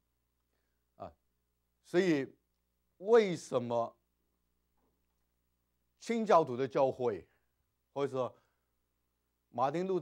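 A middle-aged man speaks with animation in short bursts, close to a microphone.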